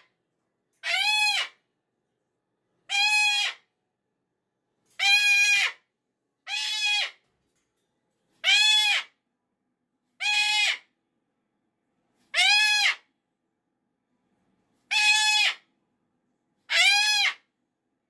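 A cockatoo screeches loudly and repeatedly, close by.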